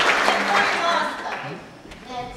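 A girl speaks into a microphone over loudspeakers.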